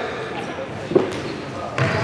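A futsal ball is kicked on a wooden floor.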